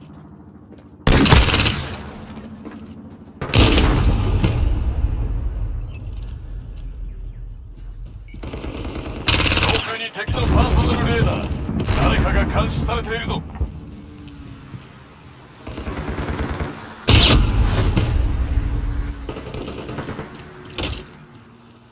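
Rifle gunshots fire in loud, sharp bursts.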